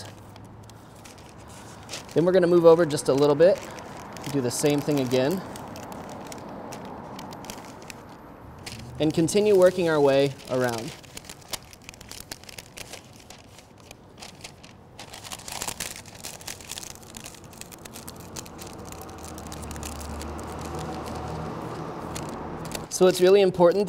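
Paper crinkles and rustles as it is folded and creased.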